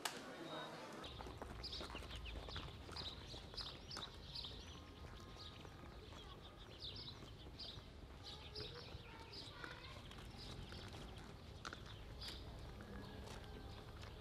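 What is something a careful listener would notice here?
Footsteps scuff along a paved road.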